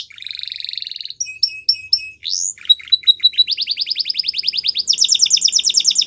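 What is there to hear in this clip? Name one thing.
A canary sings close by in quick, rapid trills and chirps.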